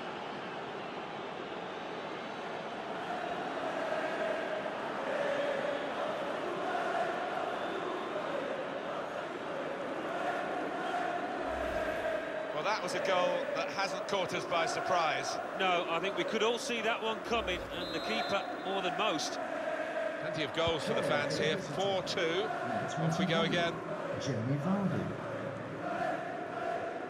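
A large crowd cheers and chants loudly in a stadium.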